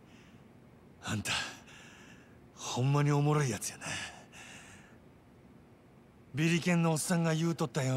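A man speaks slowly in a low, mocking voice.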